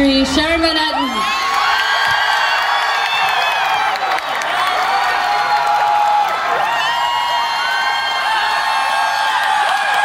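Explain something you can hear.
An electric guitar plays a wailing solo with long bending notes.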